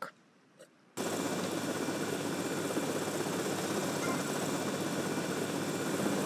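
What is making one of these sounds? A small toy helicopter's rotor whirs steadily.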